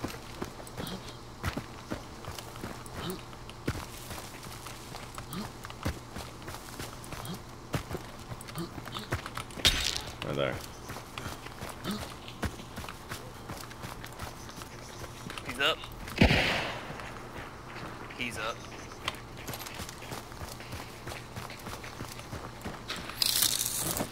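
Footsteps crunch over dry leaves and twigs outdoors.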